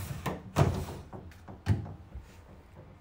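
A phone rubs and bumps against something close by.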